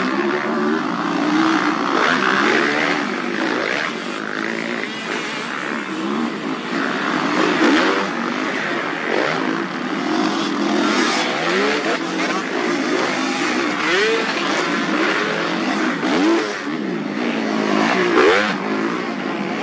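Motorcycle engines rev loudly, rising and falling in pitch as the bikes ride past.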